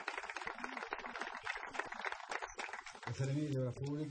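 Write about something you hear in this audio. A crowd applauds outdoors.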